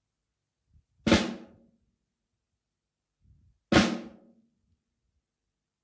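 A drum is struck hard twice, ringing out.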